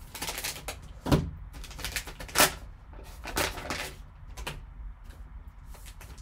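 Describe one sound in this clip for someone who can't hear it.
Plastic card cases click and tap against each other.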